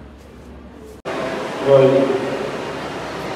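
A crowd of children murmurs.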